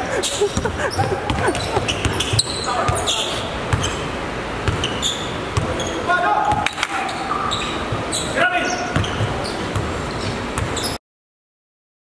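A basketball bounces on a court in an echoing indoor hall.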